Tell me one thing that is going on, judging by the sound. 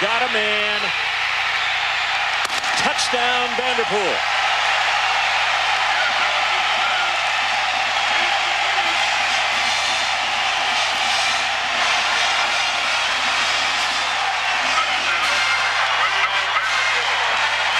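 A large stadium crowd cheers and roars loudly throughout.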